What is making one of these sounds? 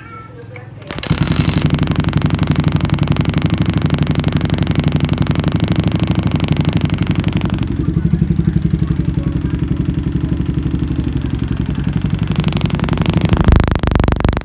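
A four-stroke single-cylinder motorcycle engine runs.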